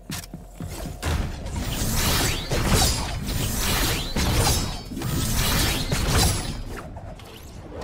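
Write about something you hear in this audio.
A loud magical whoosh roars and crackles.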